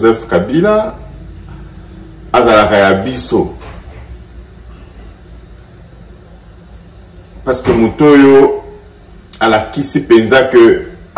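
A man speaks close by in short, animated phrases with pauses.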